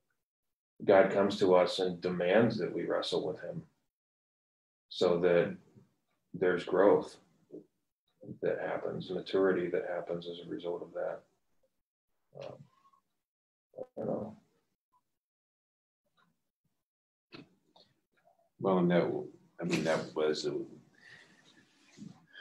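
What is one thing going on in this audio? An elderly man speaks calmly through an online call, with pauses between phrases.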